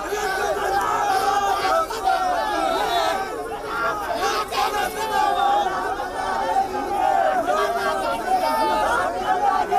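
A crowd of men shouts and chants loudly outdoors.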